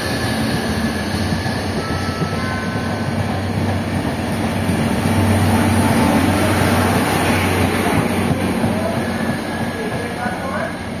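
A train rumbles past close by on the rails.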